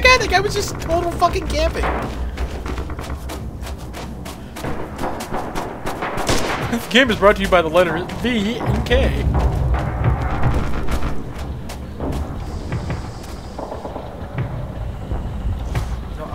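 Footsteps thud steadily over the ground.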